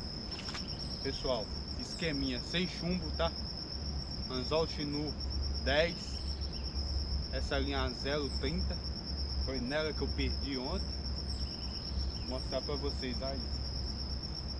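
A young man talks with animation close by, outdoors.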